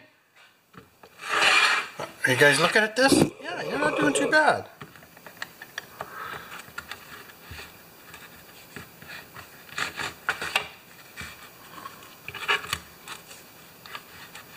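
A screwdriver scrapes and clicks against plastic.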